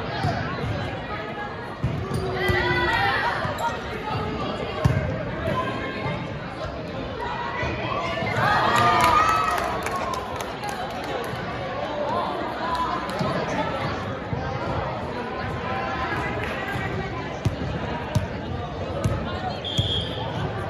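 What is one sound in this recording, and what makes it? Young women chatter and call out in a large echoing gym.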